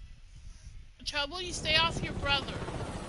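A helicopter's rotor thuds as the helicopter hovers.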